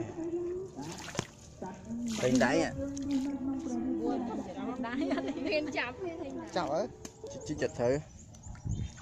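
Young girls talk and call out with animation close by.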